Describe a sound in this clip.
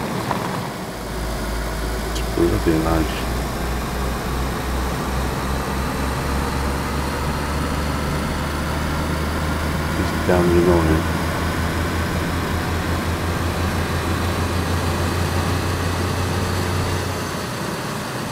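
A car engine hums low and steady as the car drives.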